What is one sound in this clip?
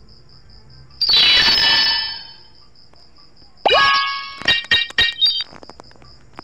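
A bright victory fanfare with chimes plays.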